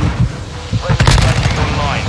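An automatic rifle fires.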